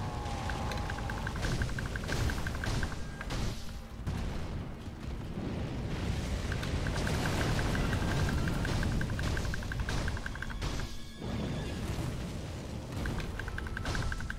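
A sword clashes and strikes against a huge beast.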